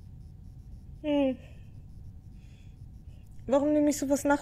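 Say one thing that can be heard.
A young woman makes short, high, nervous vocal sounds close to a microphone.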